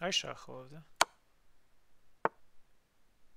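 A chess piece clicks as it is moved into place.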